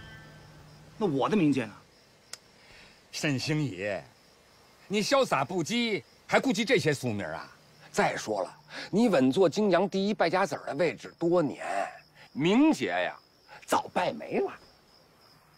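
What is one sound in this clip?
An older man speaks with animation, close by.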